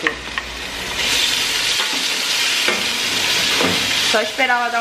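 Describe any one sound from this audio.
Meat sizzles in a hot pot.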